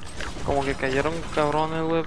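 A pickaxe strikes a wooden wall with a sharp crack.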